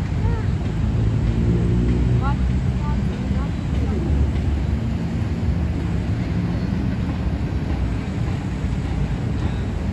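A train rumbles steadily along an elevated track nearby.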